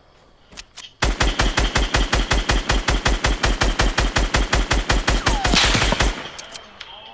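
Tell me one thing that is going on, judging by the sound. A gun fires rapidly in a long, steady burst.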